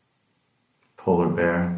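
A man speaks loudly, close by.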